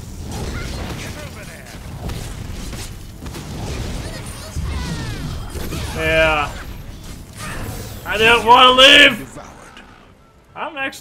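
Magic spells crackle and blows clash in a busy fight.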